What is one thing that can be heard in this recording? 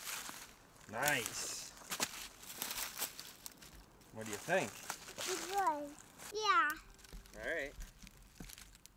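A toddler babbles and speaks in a high voice close by.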